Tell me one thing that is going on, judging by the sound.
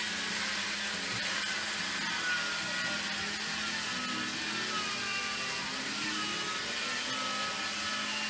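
A small motor hums steadily as a wheel turns.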